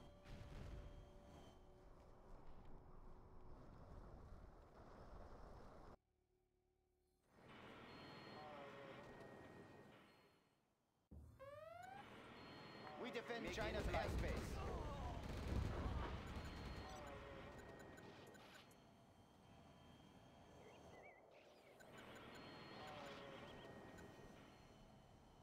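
Jet engines roar overhead.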